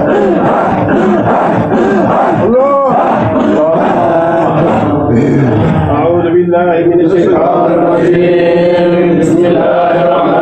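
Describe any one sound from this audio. An elderly man chants in a melodic, drawn-out voice close to a microphone.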